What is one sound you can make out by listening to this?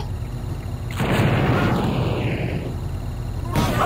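A flame launcher fires with a loud roaring whoosh.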